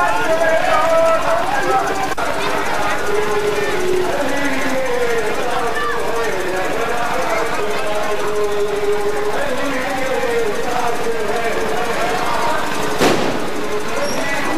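A large crowd of men chants and sings loudly outdoors.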